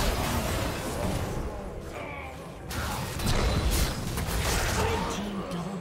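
Spell effects crackle and whoosh in quick bursts.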